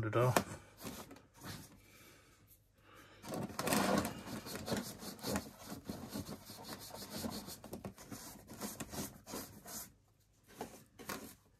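A screwdriver scrapes and clicks against hard plastic.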